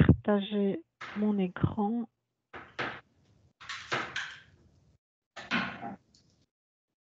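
A woman speaks through an online call, in short bursts with pauses.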